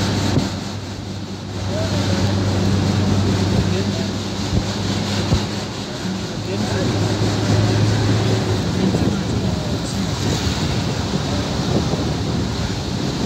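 A vehicle engine hums steadily from inside the cab as it drives along.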